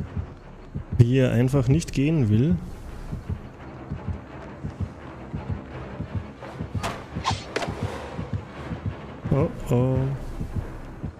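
A young man speaks animatedly into a close microphone, in short bursts.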